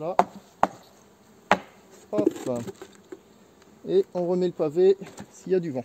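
Wooden hive parts knock together as they are handled.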